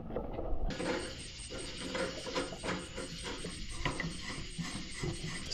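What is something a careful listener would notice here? Hands knock and rattle against a metal camp stove.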